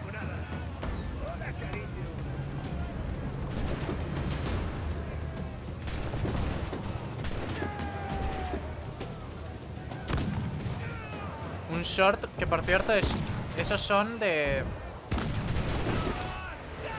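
Cannons boom and crackle in a battle.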